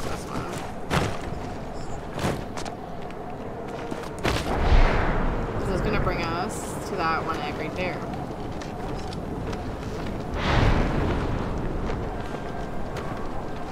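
Wind rushes past as a glider sails through the air.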